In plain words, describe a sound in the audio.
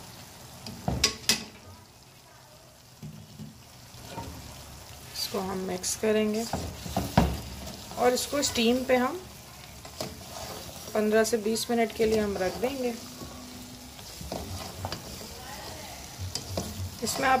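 A spatula scrapes and clatters against a pan.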